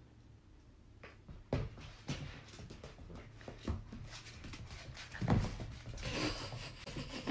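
A puppy's paws patter and scrabble on a hard floor.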